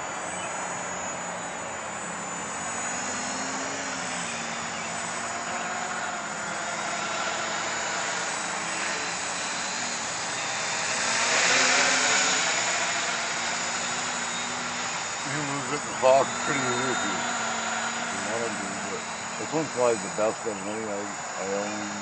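A small drone's rotors buzz steadily overhead, growing louder as it passes close and then fading a little.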